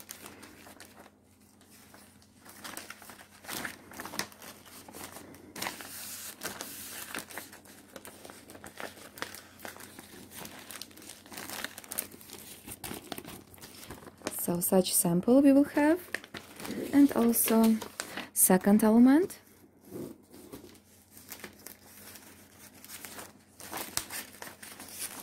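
Plastic sleeves crinkle and rustle as hands handle them.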